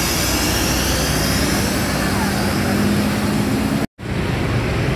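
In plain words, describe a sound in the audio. A bus engine rumbles steadily close by.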